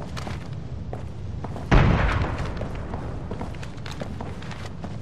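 Boots thud on hard ground as a soldier runs.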